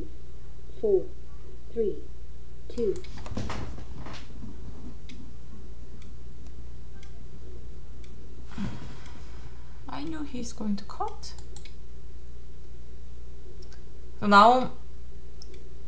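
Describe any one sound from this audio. A young woman speaks calmly and hesitantly into a close microphone, with short sounds and pauses.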